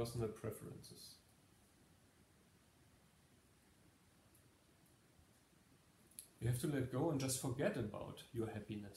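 A man speaks calmly and close by, pausing between phrases.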